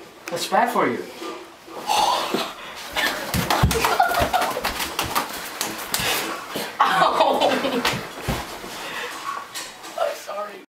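Young men laugh loudly up close.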